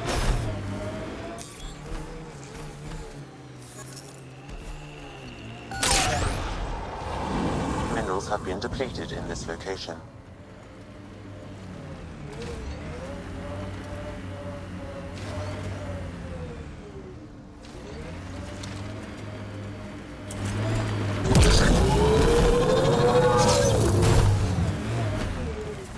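A vehicle's engine hums and revs up and down throughout.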